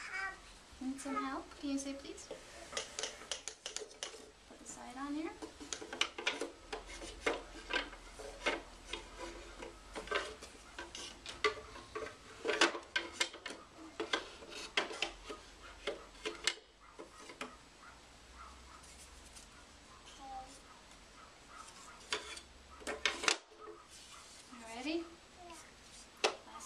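A woman talks softly to a small child nearby.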